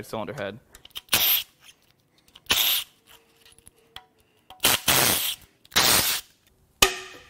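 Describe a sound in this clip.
A cordless power tool whirs in short bursts.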